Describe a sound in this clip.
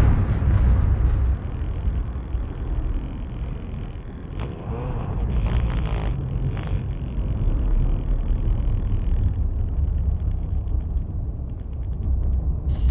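A dirt bike engine rumbles and revs nearby.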